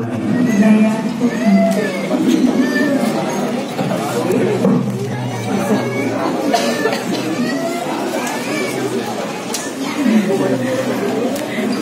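A crowd of people murmurs and talks nearby.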